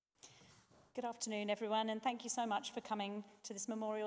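A woman reads out clearly through a microphone in a large echoing hall.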